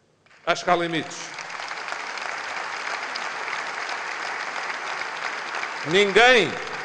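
A large crowd applauds in a big echoing hall.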